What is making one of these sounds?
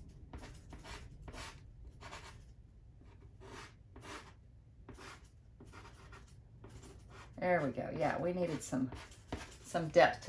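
Fingertips rub soft pastel on paper with faint, brushing scratches.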